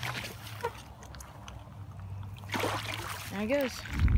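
A fish splashes into water.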